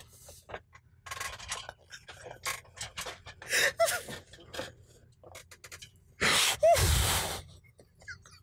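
A man laughs loudly and wheezes close to a microphone.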